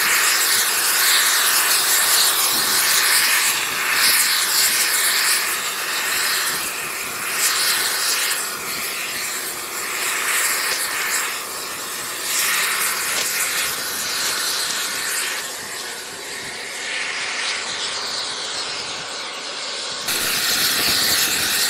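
A machine engine hums steadily nearby.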